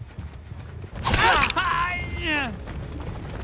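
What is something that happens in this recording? A blade slashes and strikes with a sharp hit.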